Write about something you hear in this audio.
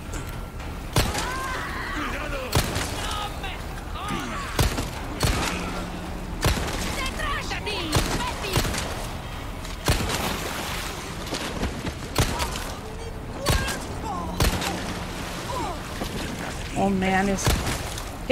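Pistol shots ring out sharply, again and again.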